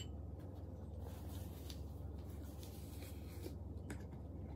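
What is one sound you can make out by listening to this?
Paper crinkles as a napkin is used.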